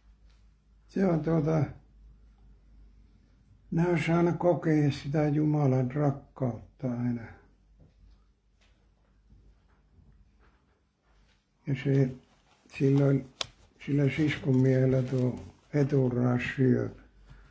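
An elderly man speaks slowly and calmly into a microphone close by, with long pauses.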